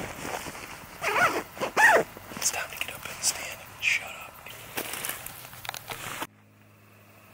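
A man speaks calmly up close outdoors.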